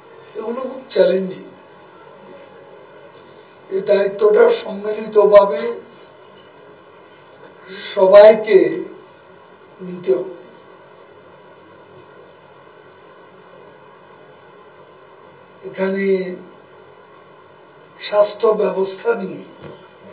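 An older man speaks slowly and deliberately into a microphone, with long pauses.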